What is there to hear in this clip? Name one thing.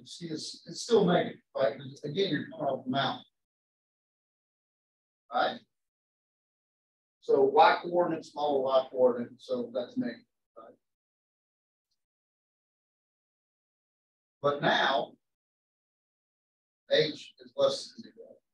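A middle-aged man lectures in pauses.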